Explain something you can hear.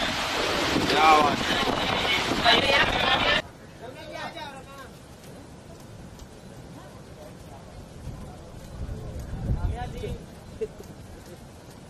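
A woman speaks briefly.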